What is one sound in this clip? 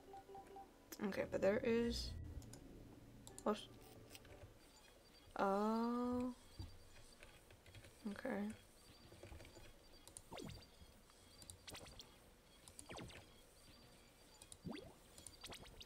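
Warbling electronic glitch tones sound in short bursts.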